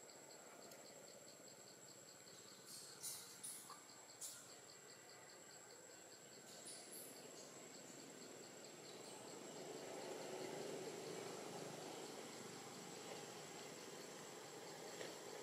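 A baby monkey scratches and gnaws at a coconut husk.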